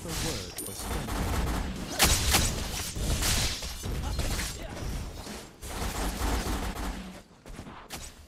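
Magic blasts and hits crash in a fast fight.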